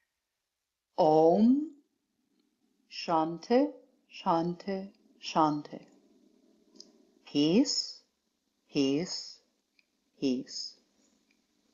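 A woman speaks calmly and slowly into a microphone, with pauses.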